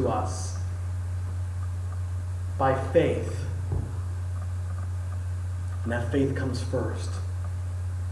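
A man speaks calmly, with pauses between phrases.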